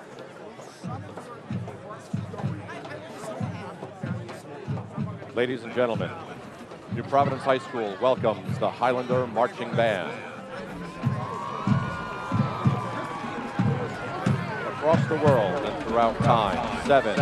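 A marching band's drums beat a steady rhythm.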